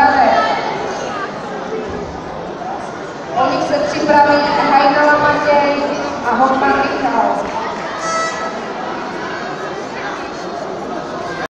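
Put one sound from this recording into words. A crowd of spectators calls out and cheers in a large echoing hall.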